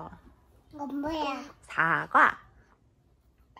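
A small child babbles close by.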